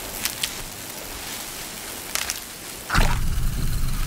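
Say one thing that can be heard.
Footsteps crunch softly through snow and grass.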